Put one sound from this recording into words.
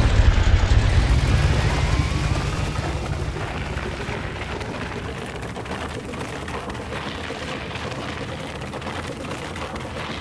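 Tyres crunch and hiss over snowy road.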